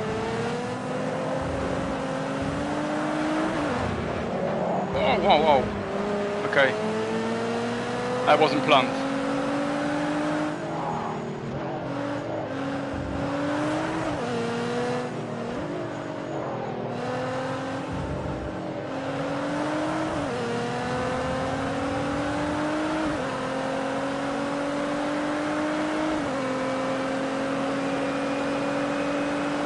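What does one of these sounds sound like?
A racing car engine roars, rising through the gears and dropping as it shifts.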